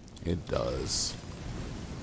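Flames whoosh in a short burst.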